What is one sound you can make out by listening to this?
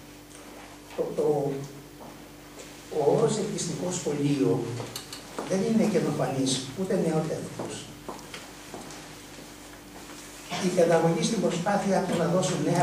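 An elderly man speaks through a microphone, reading out calmly in a room with a slight echo.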